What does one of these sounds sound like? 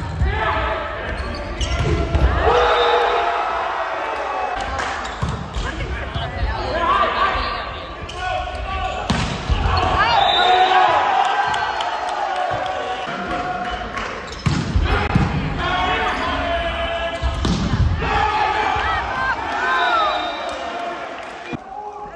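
Players and spectators shout and cheer.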